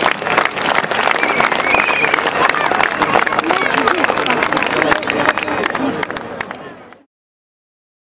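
A large outdoor crowd claps and cheers loudly.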